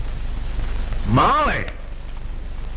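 An elderly man cries out loudly.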